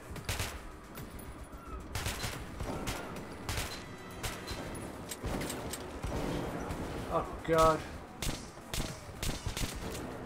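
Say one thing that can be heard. Gunshots fire in quick succession, echoing in an enclosed space.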